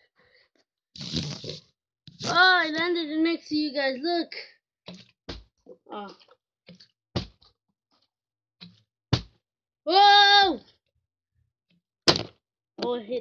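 A plastic water bottle crinkles and clicks as it is handled.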